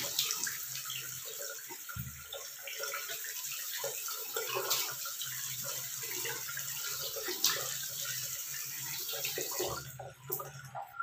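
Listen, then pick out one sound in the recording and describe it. Water splashes as a woman rinses her face.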